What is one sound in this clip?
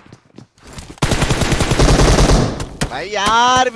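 Rapid gunshots ring out in a burst.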